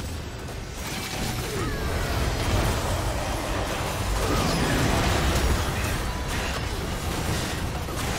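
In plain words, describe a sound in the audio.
Magic blasts whoosh and crackle in a hectic video game battle.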